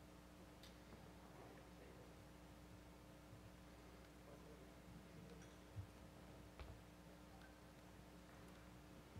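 A laptop keyboard clicks softly now and then.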